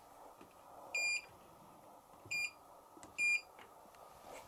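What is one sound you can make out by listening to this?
Buttons on a washing machine beep when pressed.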